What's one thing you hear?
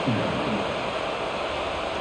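A large crowd roars steadily in an open stadium.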